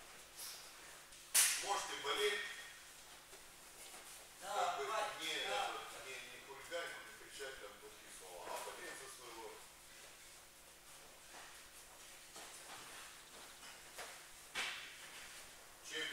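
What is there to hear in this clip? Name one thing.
Bare feet shuffle and thud on a padded mat.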